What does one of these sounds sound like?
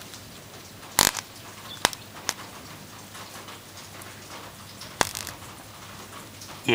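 Electric sparks snap and crackle.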